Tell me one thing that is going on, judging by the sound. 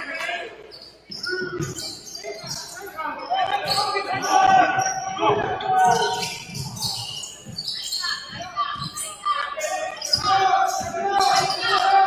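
Young men shout to each other across an echoing gym.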